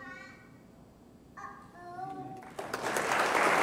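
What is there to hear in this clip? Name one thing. A violin plays a slow melody in an echoing hall.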